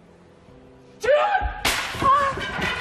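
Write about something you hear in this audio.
A wooden board snaps with a loud crack.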